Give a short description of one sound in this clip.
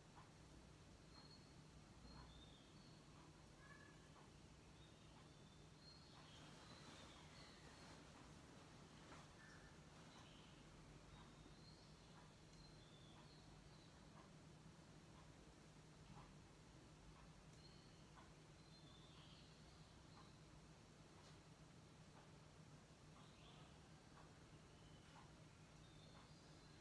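A television plays faintly in the background.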